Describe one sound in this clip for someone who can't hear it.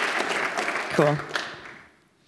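A woman speaks briefly through a microphone.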